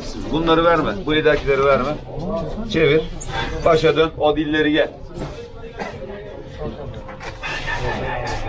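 A crowd of men murmurs in the background.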